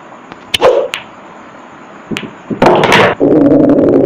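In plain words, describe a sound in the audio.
Billiard balls click against each other and roll.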